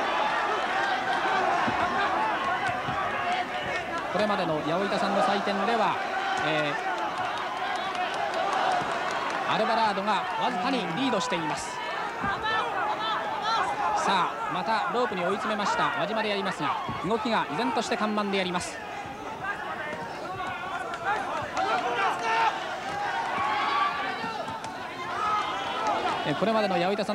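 A large crowd murmurs and cheers in a big hall.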